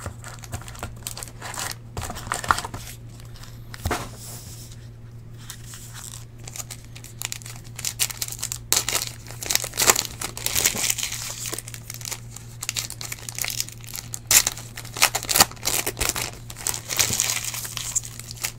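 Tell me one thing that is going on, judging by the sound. Card packs tap and shuffle against each other.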